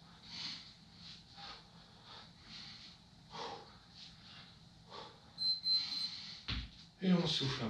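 Bare feet thump on a mat.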